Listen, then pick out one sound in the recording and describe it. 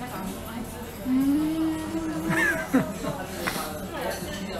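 A young woman hums with pleasure while eating.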